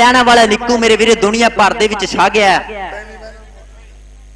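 A man announces loudly over a loudspeaker outdoors, his voice echoing.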